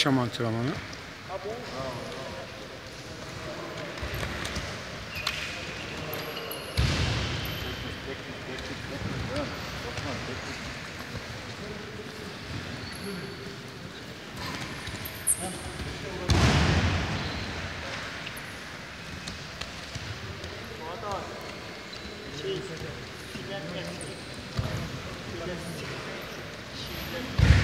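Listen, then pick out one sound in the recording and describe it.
Wrestlers' feet shuffle and thud on mats in a large echoing hall.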